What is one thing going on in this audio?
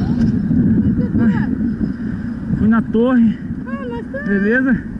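A woman speaks nearby with animation.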